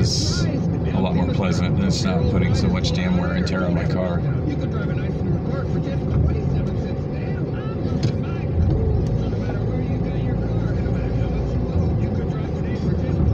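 A car engine hums and tyres roll steadily on the road, heard from inside the car.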